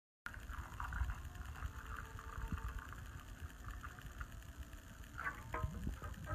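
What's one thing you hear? Liquid pours from a pan into a mug.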